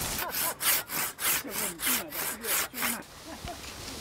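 A hand saw rasps through wood in quick strokes.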